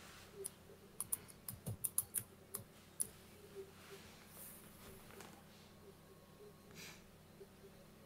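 Computer keys click in quick bursts.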